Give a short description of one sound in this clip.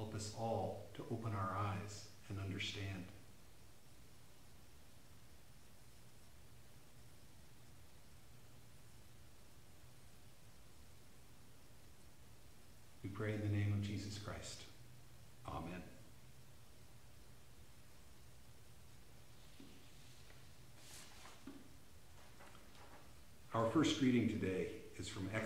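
An older man speaks calmly and close by, with long pauses.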